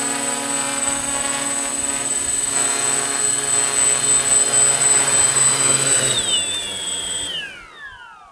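A drone hovers close by with a steady, high buzzing whir.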